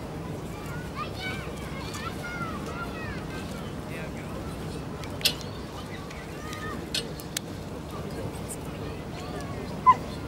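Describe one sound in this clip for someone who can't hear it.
A small crowd murmurs softly outdoors.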